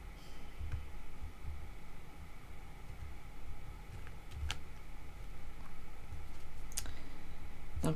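A deck of cards is shuffled in the hands.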